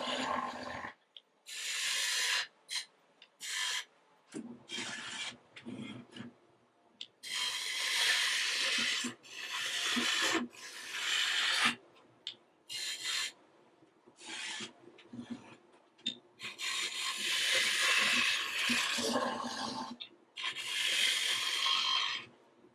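A gouge scrapes and hisses against spinning wood in bursts.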